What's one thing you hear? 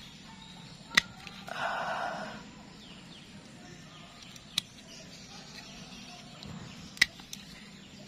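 Pruning shears snip through thin roots with sharp clicks.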